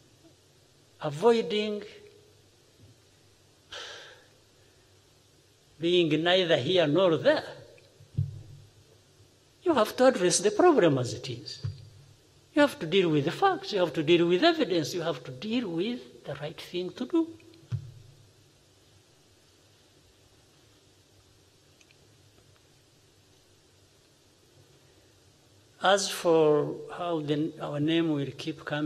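A middle-aged man speaks calmly and deliberately into a microphone in a large, echoing room, with long pauses.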